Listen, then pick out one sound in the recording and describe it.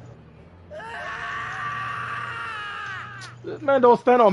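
A young man screams in panic.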